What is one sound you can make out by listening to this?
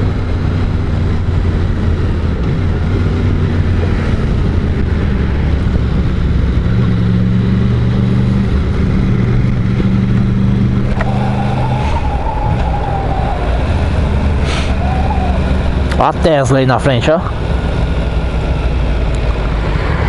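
A motorcycle engine hums steadily up close, rising and falling in pitch as it changes speed.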